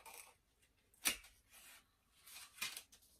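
A cardboard box rustles and taps as it is handled.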